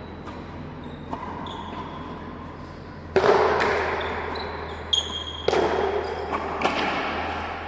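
Sneakers squeak sharply on a smooth floor.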